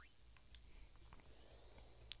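A magic spell rings out with a bright shimmer.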